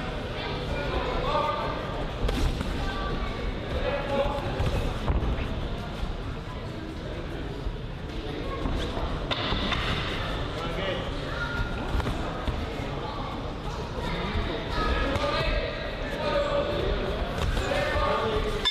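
Boxing gloves thump against a body and gloves.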